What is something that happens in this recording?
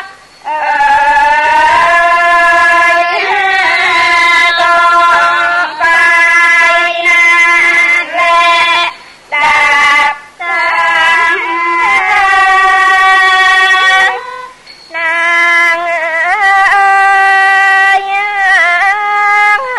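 A woman sings a slow, wavering traditional melody close to a microphone.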